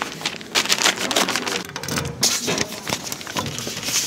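A metal mailbox door clatters open.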